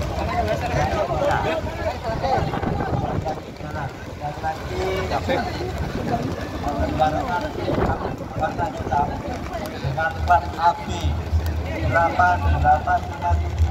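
A large outdoor crowd chatters and shouts nearby.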